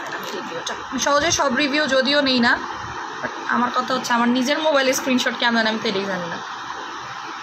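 A young woman speaks calmly and close to the microphone.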